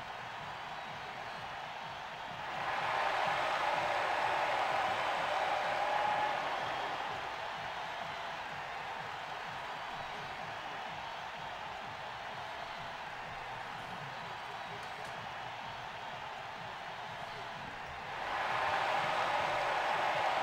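A large crowd cheers and roars in a big echoing arena, swelling loudly at times.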